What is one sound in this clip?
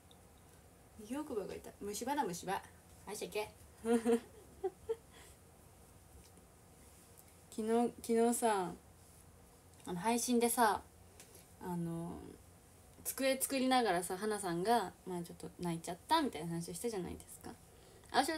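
A young woman talks casually and close by.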